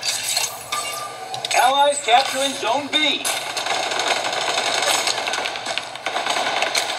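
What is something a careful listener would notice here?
Video game gunshots crackle from a small speaker.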